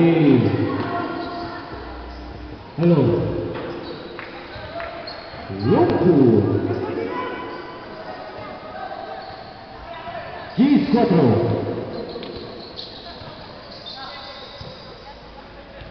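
A crowd of spectators chatters and cheers in an echoing hall.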